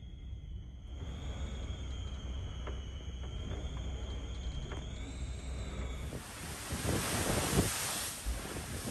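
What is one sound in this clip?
Strong wind roars outdoors.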